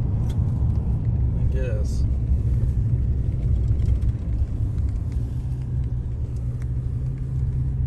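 Wind buffets past an open car window.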